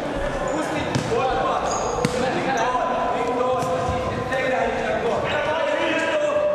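Young men shout to each other across an echoing sports hall.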